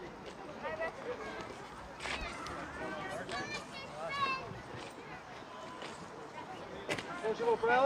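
Men and women in a crowd chat nearby outdoors.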